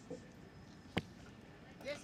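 An arrow thuds sharply into a target.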